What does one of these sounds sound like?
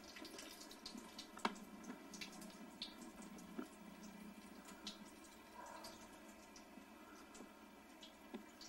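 A cat laps water.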